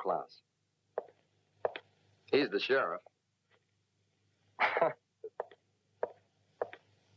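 Footsteps walk slowly away across a floor.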